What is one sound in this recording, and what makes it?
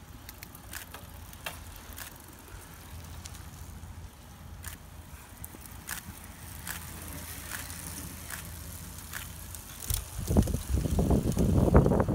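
Bicycles roll past with ticking freewheels.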